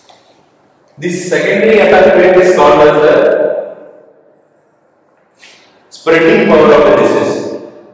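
A man speaks calmly and clearly at close range, lecturing.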